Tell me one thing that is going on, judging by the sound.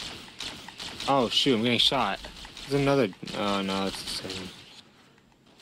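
A man speaks with animation into a microphone, close by.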